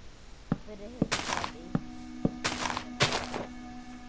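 Game blocks thud softly as they are placed one after another.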